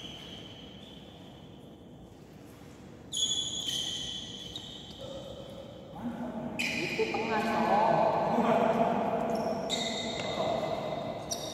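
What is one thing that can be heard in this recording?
Rackets hit a shuttlecock back and forth in a large echoing hall.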